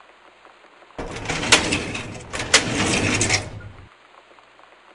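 A metal drawer slides open and shut with a loud rattle.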